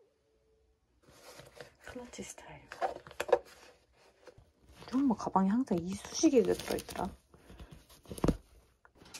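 A leather bag rustles as hands handle it.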